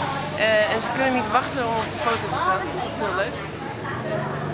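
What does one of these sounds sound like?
A young woman talks cheerfully close to the microphone.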